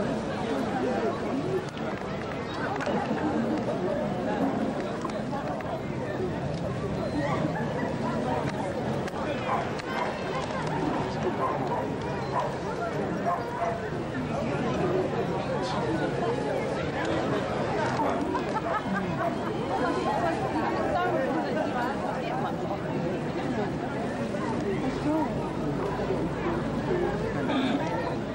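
A large outdoor crowd chatters steadily all around.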